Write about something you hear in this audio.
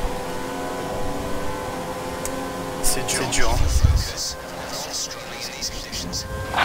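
A racing car engine whines at high revs, then drops in pitch as it slows.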